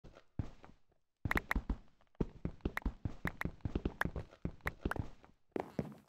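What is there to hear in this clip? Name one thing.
Blocks crack and crumble under quick repeated hits in a video game.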